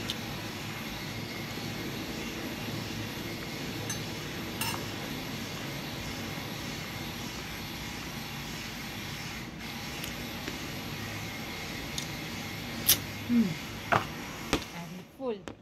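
A fork scrapes and clicks against a plastic food container.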